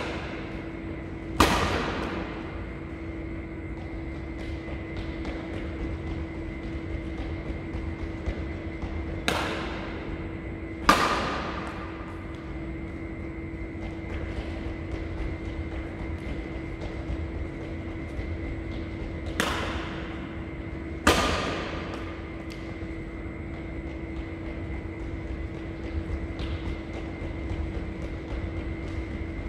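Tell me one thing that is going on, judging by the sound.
Sneakers squeak and patter on the court floor.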